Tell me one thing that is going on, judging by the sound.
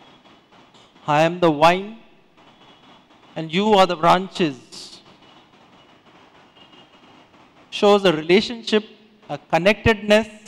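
A middle-aged man speaks calmly through a microphone in an echoing room, with pauses between phrases.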